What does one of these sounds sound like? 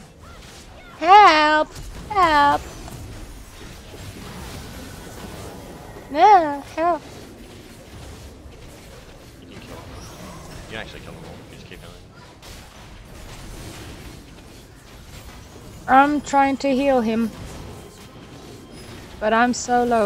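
A young woman speaks with excitement into a close microphone, in short bursts.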